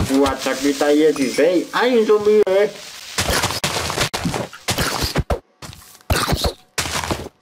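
Sword blows land on a creature with short, sharp hits.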